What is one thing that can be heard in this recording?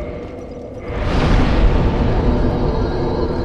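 A deep rushing whoosh swells up.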